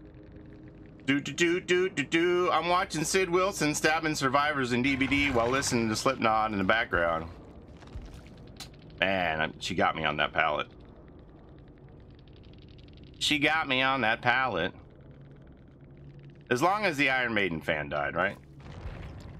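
A middle-aged man talks with animation into a microphone, in bursts with pauses.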